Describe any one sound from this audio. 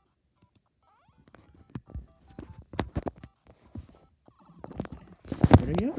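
Video game sound effects blip and chime from a small speaker.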